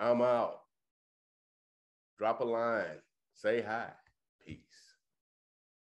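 A middle-aged man speaks with animation into a microphone, heard as if on an online call.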